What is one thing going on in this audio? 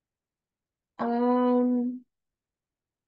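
A woman hums a long thoughtful sound through a microphone.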